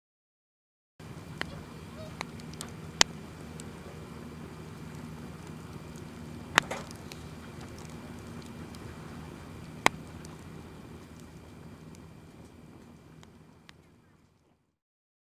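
Flames roar softly and steadily.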